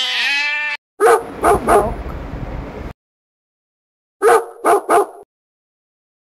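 A puppy yelps and barks in short bursts.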